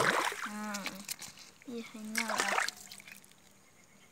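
A fish slaps onto wet ground.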